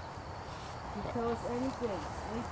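A man speaks in a low voice close by.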